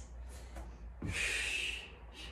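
A woman breathes hard with effort.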